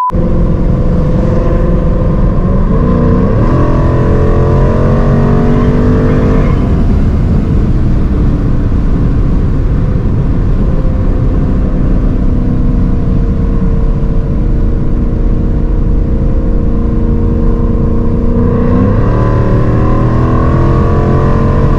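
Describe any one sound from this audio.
A car engine roars loudly from inside the car, rising in pitch and dropping sharply at each gear change.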